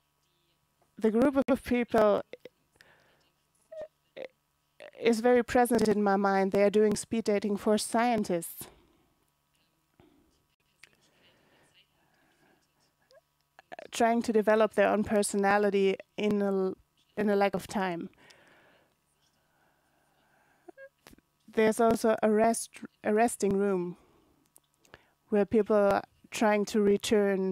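A young woman speaks calmly into a microphone, pausing between phrases.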